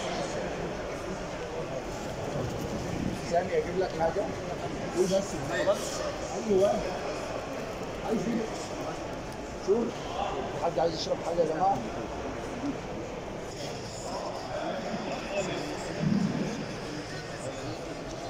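Several men talk in low, calm voices close by.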